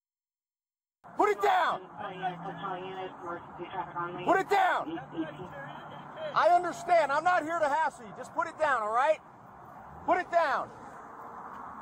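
A man speaks loudly outdoors, a short way off.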